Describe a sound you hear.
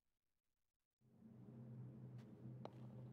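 A low magical hum drones.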